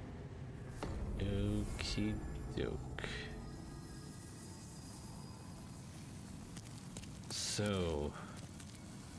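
A young man speaks briefly and calmly, close to a microphone.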